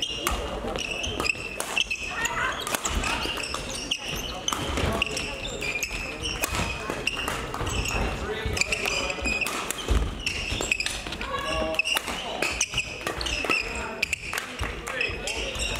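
Rackets strike a shuttlecock back and forth in a large echoing hall.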